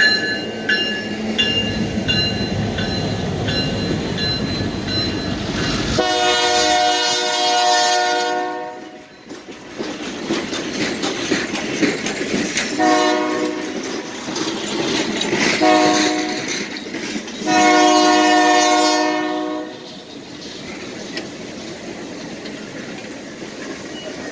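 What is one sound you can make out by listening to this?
Train cars roll past close by, wheels rumbling and clacking on the rails.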